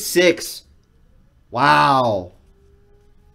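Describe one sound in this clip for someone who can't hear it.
A young man exclaims loudly into a microphone.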